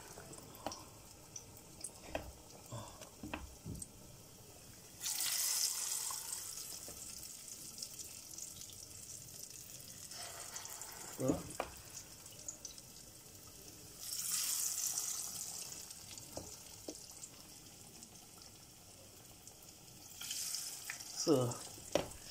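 A spoon scrapes and taps against a bowl.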